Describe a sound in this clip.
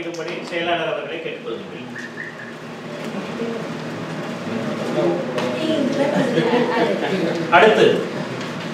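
A man speaks steadily in a room with slight echo.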